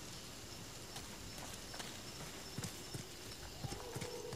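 Footsteps thud softly on grass and dirt.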